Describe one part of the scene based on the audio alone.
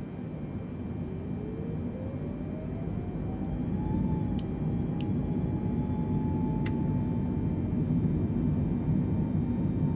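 Jet engines whine and rumble, rising in pitch as they spool up.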